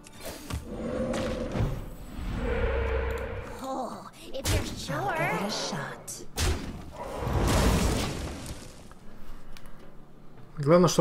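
Magical whooshes and chimes ring out.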